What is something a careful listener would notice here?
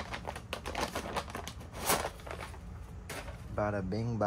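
Paper packing rustles in a cardboard box.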